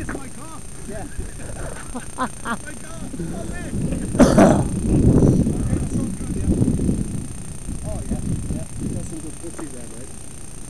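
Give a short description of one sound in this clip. Men talk with each other outdoors nearby.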